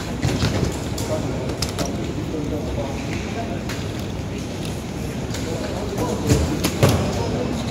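A baggage carousel rumbles and clatters steadily as its belt turns.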